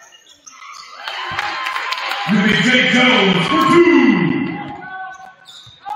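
A crowd in the stands cheers loudly, then fades.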